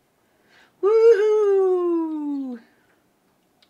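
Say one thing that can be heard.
A woman sings a long falling note close to a microphone.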